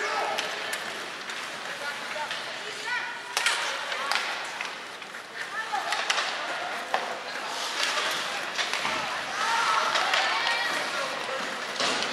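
Skates scrape and hiss on ice in a large echoing arena.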